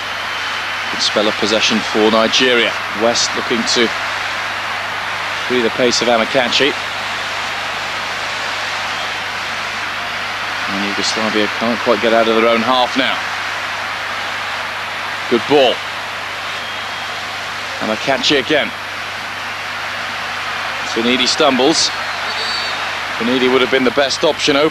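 A large stadium crowd murmurs and hums steadily in the distance.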